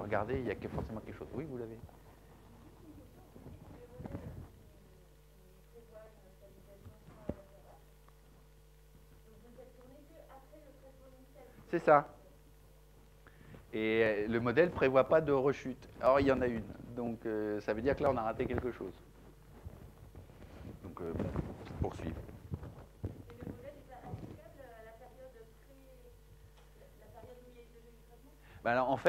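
A middle-aged man lectures through a microphone, pausing often.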